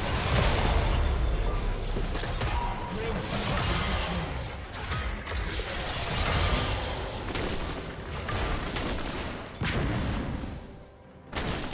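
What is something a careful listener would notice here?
Spell blasts, whooshes and hits from a fantasy battle game crackle and boom.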